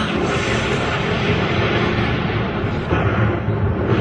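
Lightning crackles and sizzles loudly.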